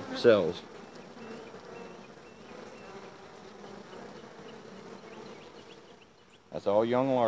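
Bees buzz softly.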